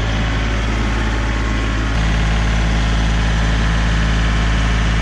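A compact diesel tractor engine runs.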